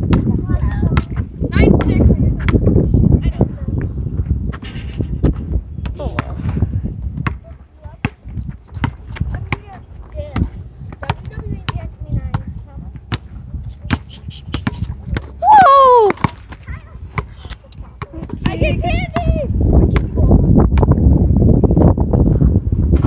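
A basketball bounces repeatedly on asphalt.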